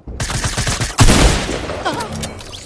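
A loud crackling crash bursts out.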